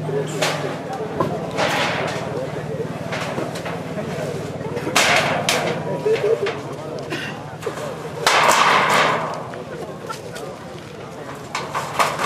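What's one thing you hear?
Plastic sheeting rustles and flaps as a man pulls at a shelter.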